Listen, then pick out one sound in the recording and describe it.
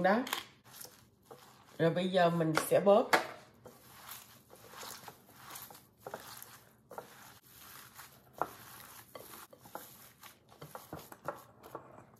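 Gloved hands squish and mix a crumbly mixture in a glass bowl.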